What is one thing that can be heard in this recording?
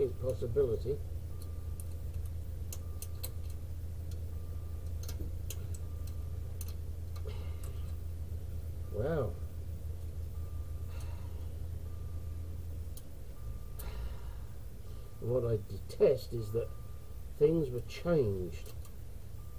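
A hand tool clicks and scrapes against metal parts up close.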